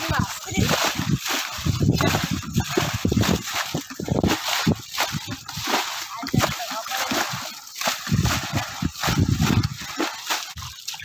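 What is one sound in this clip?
Water splashes and gushes as buckets are poured into a net.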